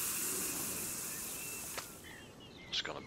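A fishing reel whirs as a line is cast out over water.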